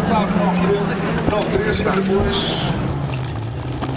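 Gravel and grit spray against a car's body.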